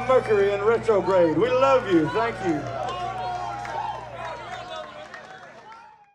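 A live band plays electric guitars and drums, with the last chord ringing out and fading.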